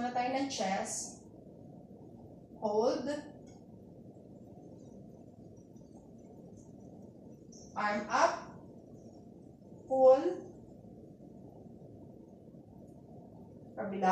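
A woman speaks calmly in short phrases nearby.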